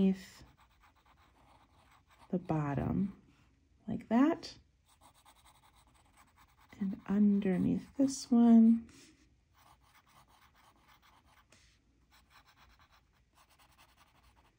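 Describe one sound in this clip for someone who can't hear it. A fine-tip pen scratches lightly on paper.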